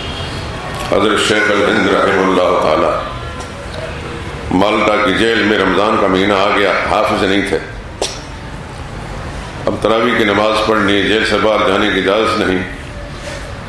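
An elderly man chants in a melodic voice through a microphone, in a reverberant hall.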